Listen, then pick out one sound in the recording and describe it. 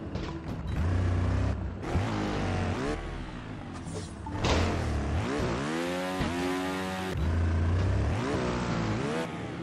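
A motorbike engine revs up and down loudly.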